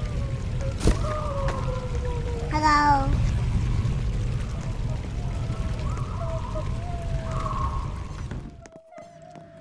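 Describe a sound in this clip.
Footsteps splash through shallow running water.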